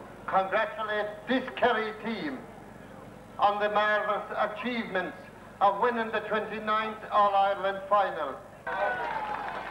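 An older man speaks into a microphone, addressing a crowd.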